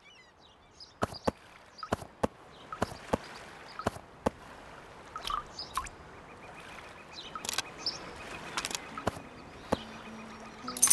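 Short digital clicks and pops sound as items are placed in a game.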